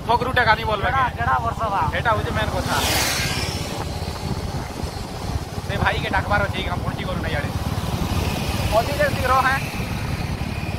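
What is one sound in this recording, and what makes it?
A young man talks with animation close to the microphone.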